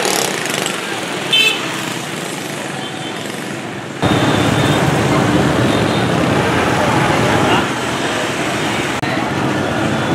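Motorbikes pass by on a street.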